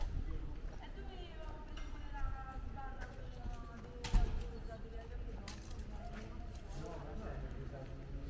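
Men and women chat together at a distance outdoors.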